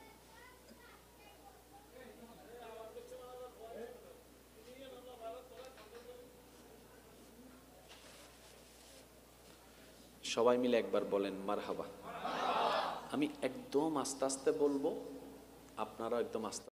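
A young man speaks into a microphone, quietly at first and then loudly and passionately, through loudspeakers.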